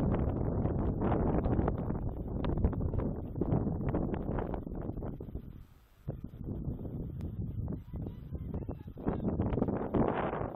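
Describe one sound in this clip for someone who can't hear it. Wind gusts loudly across the microphone outdoors.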